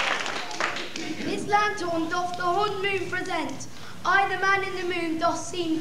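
A young boy sings clearly.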